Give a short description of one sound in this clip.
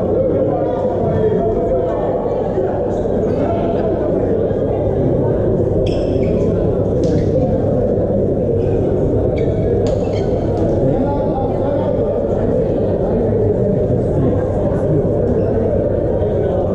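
Young men call out to each other across a court.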